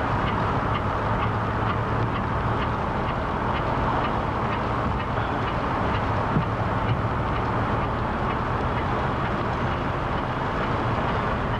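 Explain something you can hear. Wind rushes steadily past while riding outdoors.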